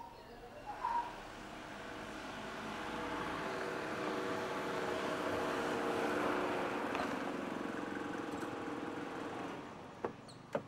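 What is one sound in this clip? A car engine hums as a car drives slowly past.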